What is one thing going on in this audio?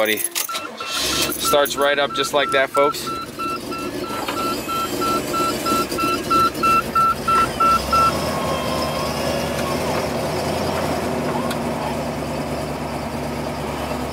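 A car engine starts and runs with a steady low rumble.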